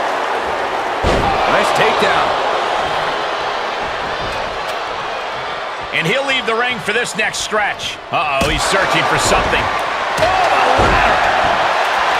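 A body slams down hard onto a wrestling mat with a heavy thud.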